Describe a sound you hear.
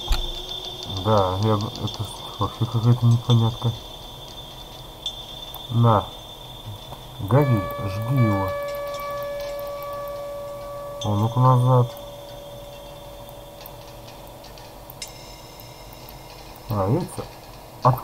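An elderly man's voice moans and wails in short bursts.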